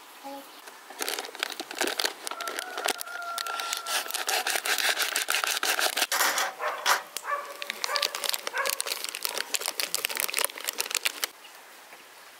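A foil bag crinkles and rustles as it is opened.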